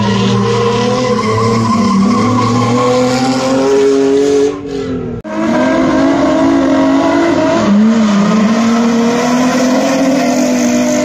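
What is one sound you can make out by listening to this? Tyres screech on pavement.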